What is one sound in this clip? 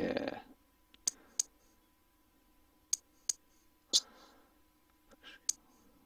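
Short electronic menu clicks sound several times.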